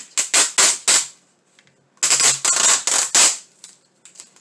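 Packing tape rips loudly off a roll in several quick pulls.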